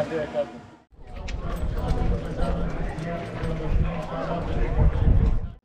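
A crowd of men and women chatter together outdoors.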